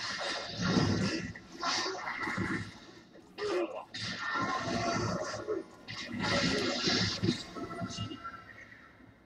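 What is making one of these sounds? Magic blasts and sword strikes crash and whoosh in quick bursts.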